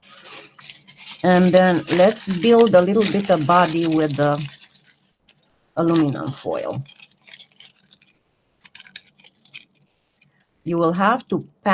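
Foil crinkles and rustles between fingers.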